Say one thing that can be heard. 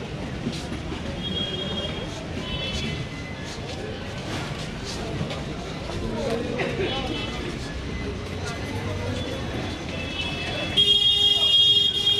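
A busy street murmurs with distant traffic outdoors.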